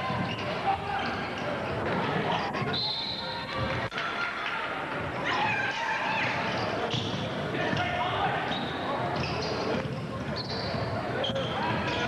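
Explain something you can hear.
A crowd of spectators chatters and calls out in a large echoing gym.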